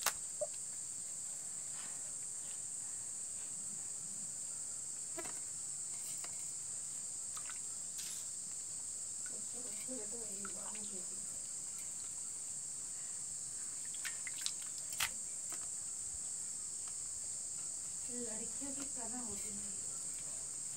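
A young child scrubs a wet cloth on concrete.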